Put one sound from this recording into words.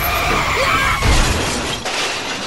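A toy tractor crashes into a toy train with a thud and clatter.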